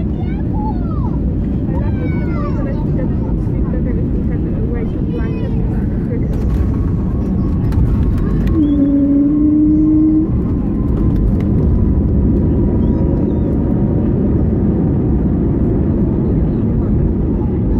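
A jet engine roars steadily inside an aircraft cabin.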